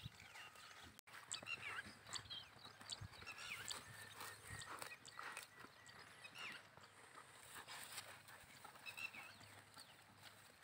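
A flock of sheep tears and munches grass nearby.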